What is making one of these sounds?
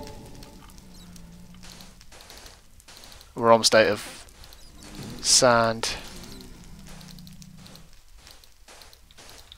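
Blocks of sand are placed and broken with soft, gritty crunches.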